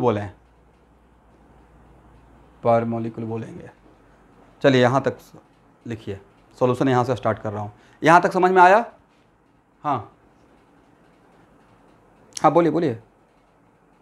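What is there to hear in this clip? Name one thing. A man speaks clearly and steadily in short phrases, close by.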